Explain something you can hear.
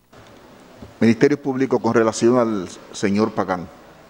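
A man speaks firmly through a microphone.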